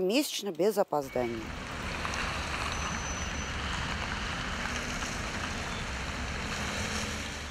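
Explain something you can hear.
Cars drive past on a wet street outdoors.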